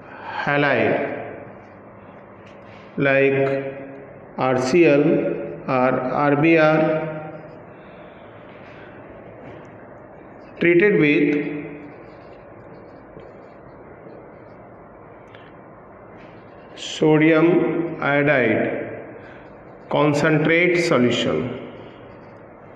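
A man speaks calmly in short phrases, as if explaining, close by.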